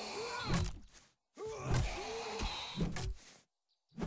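A heavy club thuds against a body.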